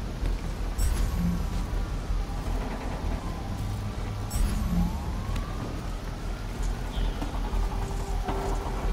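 Fires crackle and roar steadily.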